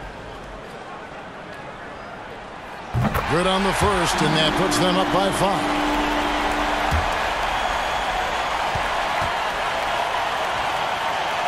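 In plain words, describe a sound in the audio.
A large arena crowd murmurs, then breaks into loud, steady cheering.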